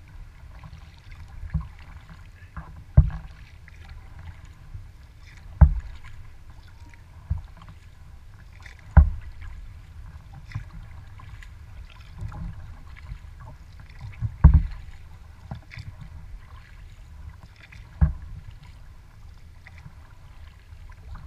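Water laps and splashes against the bow of a kayak.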